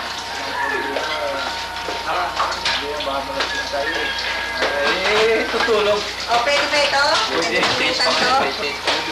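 Several men talk and laugh together nearby.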